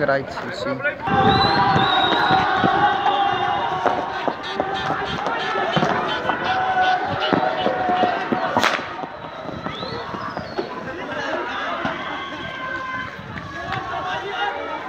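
A crowd shouts in the street.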